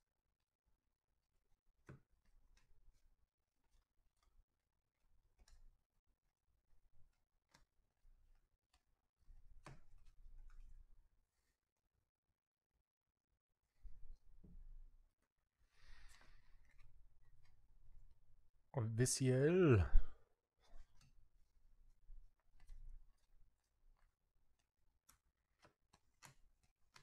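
Trading cards flick and slide against each other as they are shuffled by hand.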